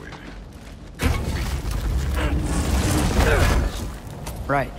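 A heavy chest lid creaks open.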